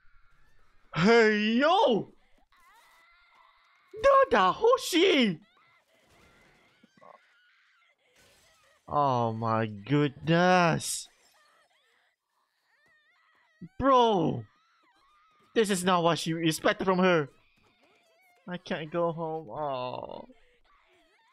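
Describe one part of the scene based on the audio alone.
A young man speaks with animation into a close microphone, exclaiming in bursts.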